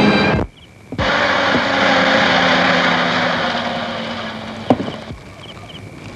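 Smoke hisses loudly in a rushing burst that slowly fades.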